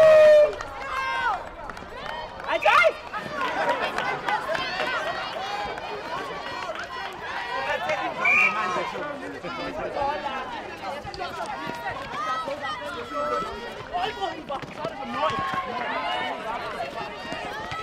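Young women and spectators shout and call out with excitement, heard outdoors.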